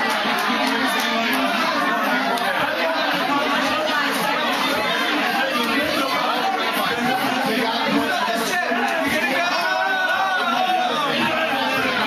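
A crowd of men and women chatter loudly all around, close by.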